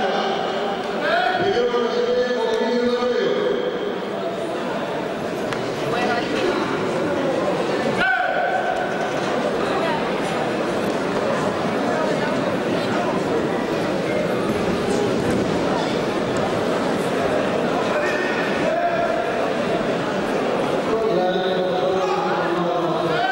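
Voices shout out from the crowd.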